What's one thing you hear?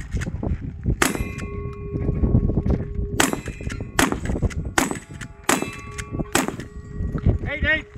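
Steel targets ring out with a metallic clang after hits.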